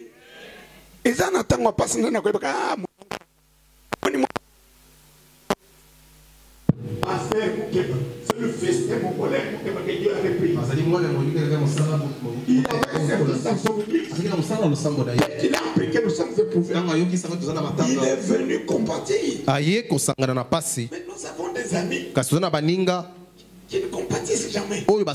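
A man preaches with animation through a microphone and loudspeakers.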